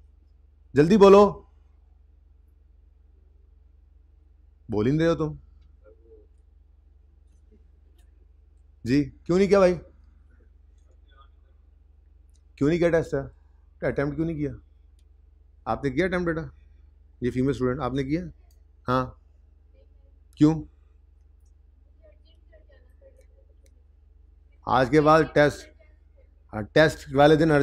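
A man lectures calmly into a microphone, speaking in short bursts with pauses.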